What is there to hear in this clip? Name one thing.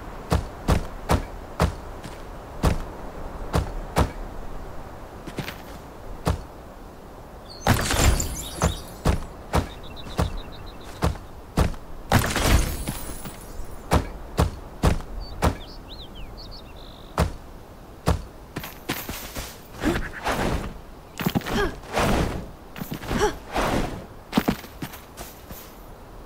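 Stone blocks thud sharply into place, one after another.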